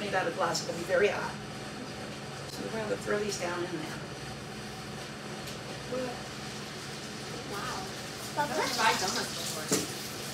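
An older woman talks calmly and cheerfully nearby.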